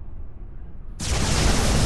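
A laser weapon fires with a loud, harsh blast.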